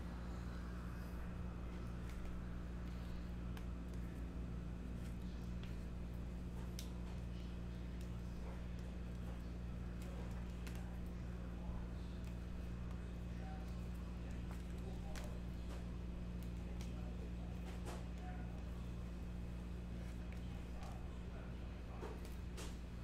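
Trading cards click and rustle as hands handle them.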